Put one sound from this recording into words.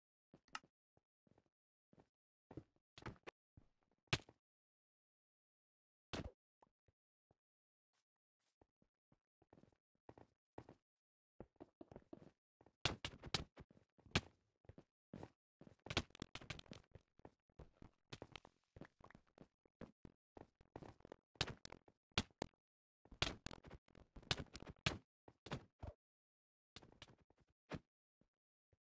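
Stone blocks break with short, crunchy knocks.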